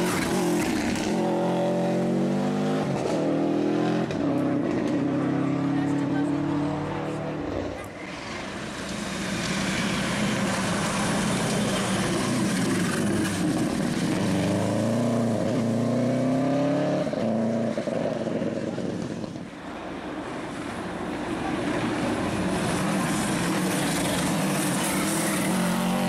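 A rally car engine roars and revs hard as the car speeds past.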